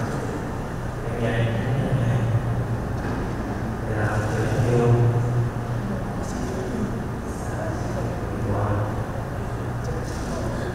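A young man speaks calmly into a microphone in a large echoing hall.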